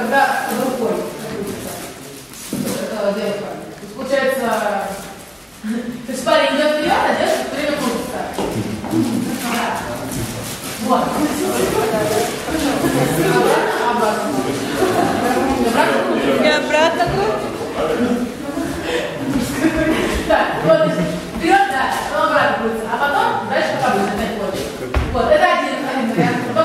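A crowd of men and women sing together in a room with an echo.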